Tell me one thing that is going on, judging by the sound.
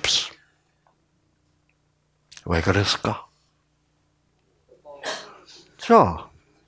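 An elderly man speaks calmly through a microphone, pausing between phrases.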